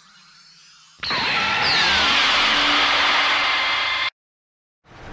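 A loud burst of rushing energy roars, then cuts off.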